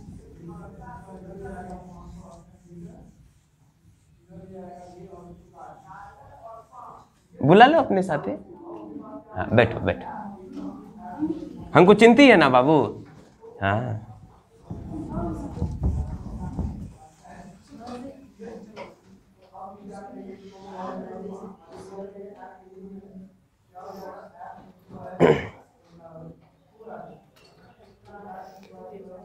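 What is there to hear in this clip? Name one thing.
A man speaks steadily, explaining as he teaches, close by.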